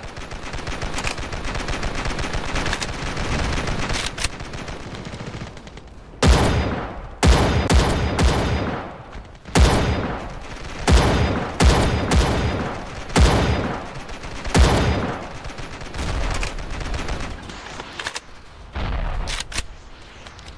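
A rifle bolt clicks and clacks as the rifle is reloaded.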